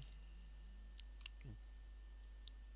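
Small clicks sound.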